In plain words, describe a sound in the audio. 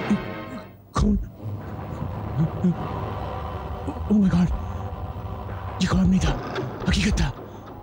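A man speaks in a distressed, agitated voice nearby.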